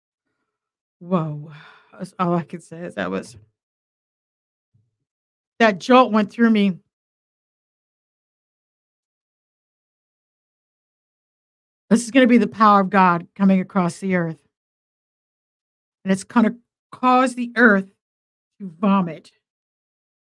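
An older woman speaks with animation into a close microphone, in bursts with pauses.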